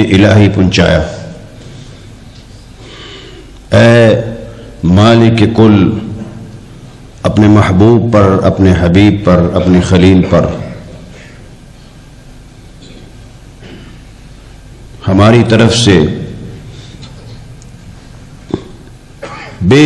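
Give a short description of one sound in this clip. A man chants loudly in a melodic voice through a microphone, with pauses between phrases.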